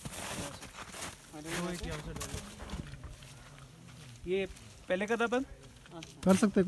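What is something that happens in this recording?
Tent fabric rustles as a man handles it.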